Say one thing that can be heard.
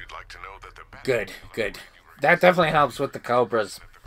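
A man speaks calmly through a radio.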